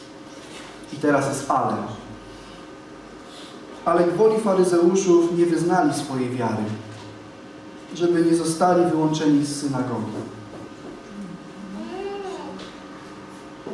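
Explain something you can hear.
A young man reads aloud calmly through a headset microphone, pausing between phrases.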